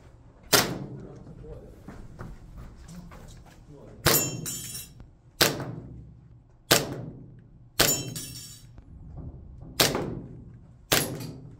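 A handgun fires single shots that echo through an indoor range.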